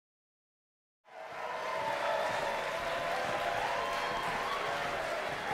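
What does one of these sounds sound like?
An audience applauds and cheers loudly in a large hall.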